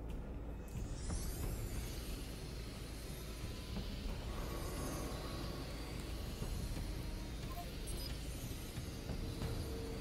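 A small drone whirs as it flies.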